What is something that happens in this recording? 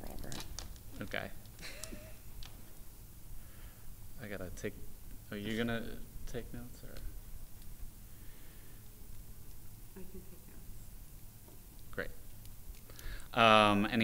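Several adults talk calmly in turns.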